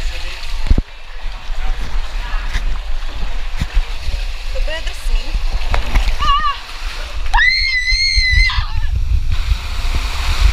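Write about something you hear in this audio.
Water rushes loudly down a slide.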